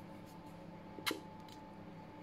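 A plastic bottle knocks lightly as it is picked up.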